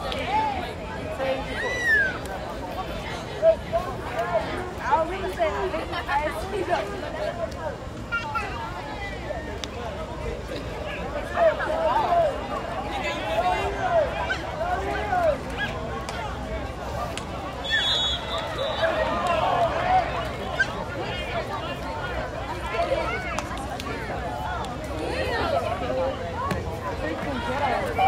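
Young men shout and talk nearby.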